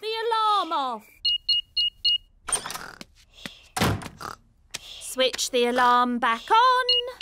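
A man speaks cheerfully in a cartoon voice.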